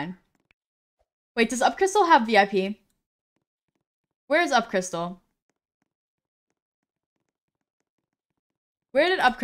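A young woman talks with animation into a close microphone, in short bursts.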